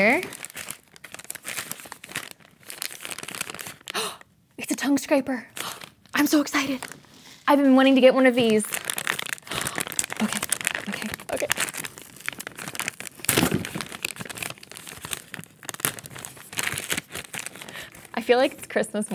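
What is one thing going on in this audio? Paper and plastic wrapping rustle and crinkle as hands unwrap it.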